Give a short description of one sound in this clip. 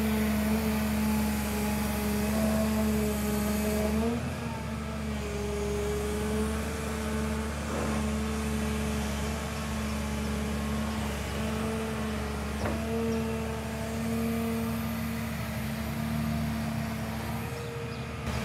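A diesel engine of an excavator hums steadily nearby.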